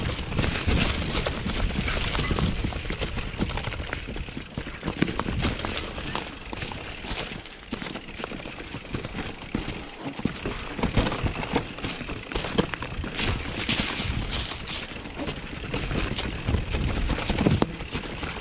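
Bicycle tyres roll and crunch over dry leaves and rocky dirt.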